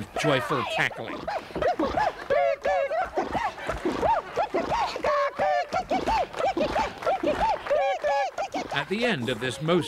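A man sings in a high, playful voice.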